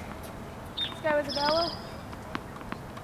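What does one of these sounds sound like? A young woman calls out briefly from across the court.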